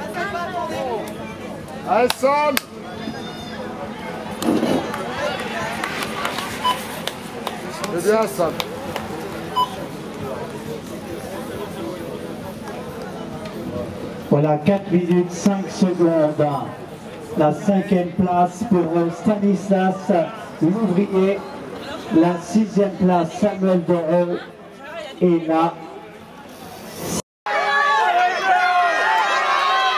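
A man speaks with animation over a loudspeaker outdoors.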